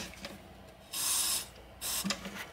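An aerosol can sprays with a short hiss.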